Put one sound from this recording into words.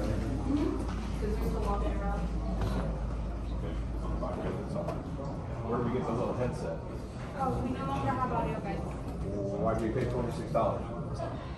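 Men and women talk quietly nearby in an echoing room.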